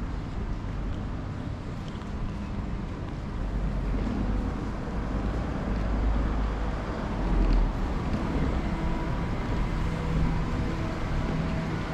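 Traffic hums steadily along a street nearby, outdoors.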